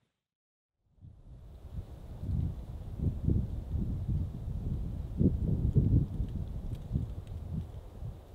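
Wind gusts through pine trees outdoors.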